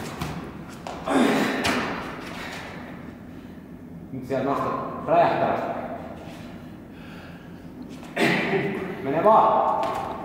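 A man grunts and strains loudly with effort in an echoing hall.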